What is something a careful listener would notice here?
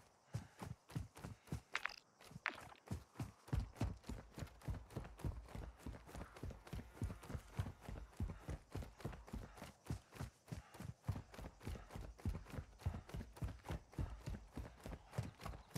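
Quick footsteps thud steadily on the ground while running.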